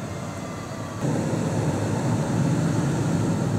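A pickup truck engine rumbles loudly as it tows a trailer past.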